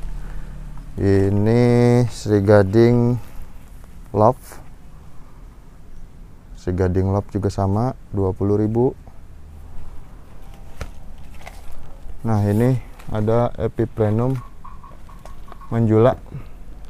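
A man talks close by, calmly, in short phrases.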